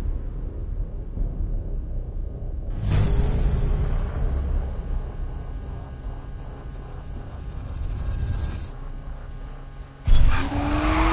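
A sports car engine rumbles low and steady.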